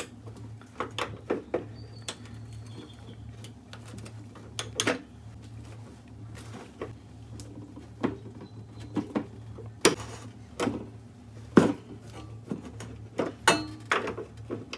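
A metal pipe wrench clanks and scrapes against a metal stove burner.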